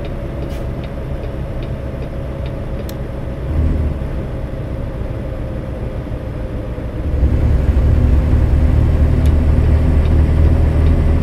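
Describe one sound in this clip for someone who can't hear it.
A truck engine rumbles steadily, growing louder as it picks up speed.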